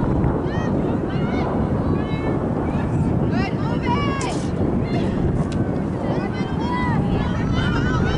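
Wind rumbles steadily across an open field.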